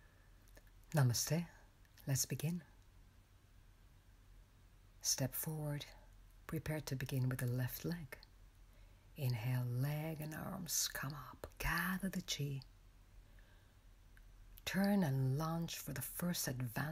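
A woman speaks close to the microphone.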